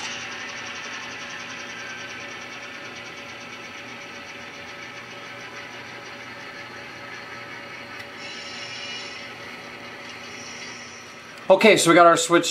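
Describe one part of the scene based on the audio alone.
An N-scale model diesel locomotive hums as it pulls cars along the track.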